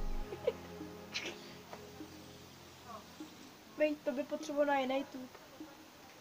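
A young boy laughs nearby.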